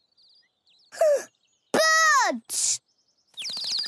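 A cartoon child's voice shouts with excitement, close to a microphone.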